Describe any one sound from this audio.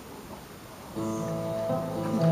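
An electric guitar plays a few steady notes.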